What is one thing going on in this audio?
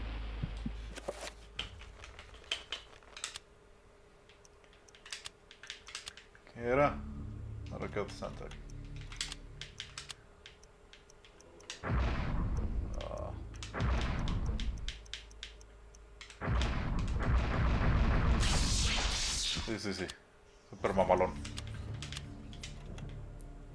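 Short game menu clicks tick one after another.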